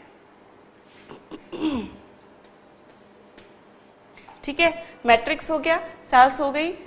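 A woman speaks clearly into a close microphone, explaining at a steady pace.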